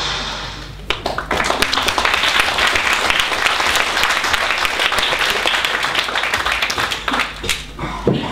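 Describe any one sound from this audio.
An audience claps and applauds in a hall.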